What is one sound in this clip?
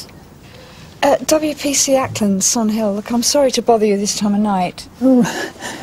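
An elderly woman speaks hesitantly.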